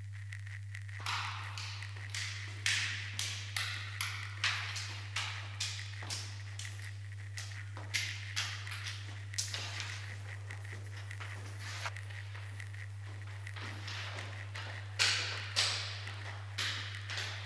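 Footsteps thud on hard stairs and a floor.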